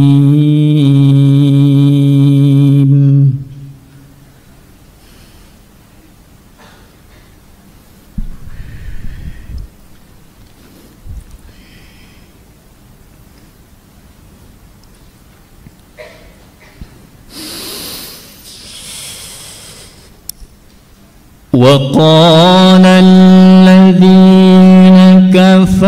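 A young man chants melodically into a microphone, with long held notes, heard through a loudspeaker.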